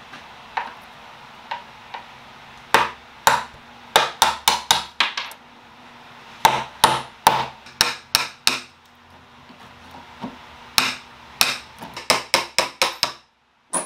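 A metal blade scrapes and chips at old wood in short, sharp strokes.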